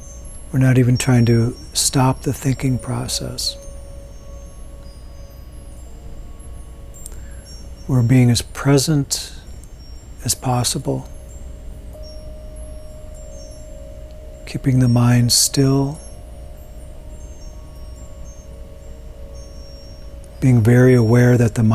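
A man speaks slowly and calmly into a nearby microphone, with long pauses.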